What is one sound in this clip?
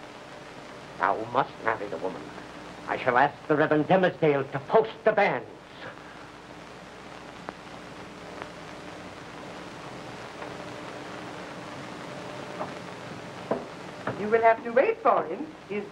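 A man speaks nearby in reply.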